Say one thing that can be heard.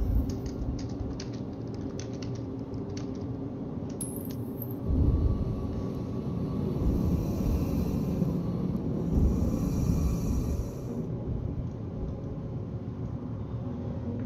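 A spacecraft's engines rumble low and steadily.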